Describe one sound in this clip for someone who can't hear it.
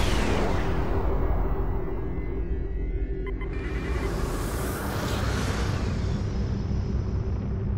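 A spaceship engine roars past with a rushing whoosh.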